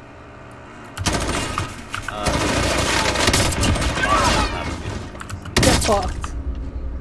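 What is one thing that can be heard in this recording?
Gunfire bursts loudly and rapidly.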